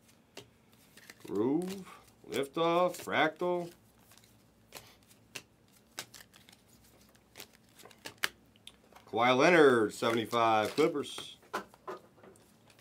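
Trading cards rustle and click as they are shuffled by hand.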